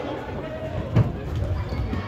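A ball thumps on a hard floor.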